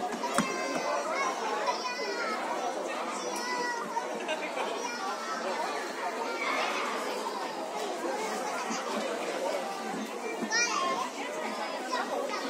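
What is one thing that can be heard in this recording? Young children chatter and squeal nearby.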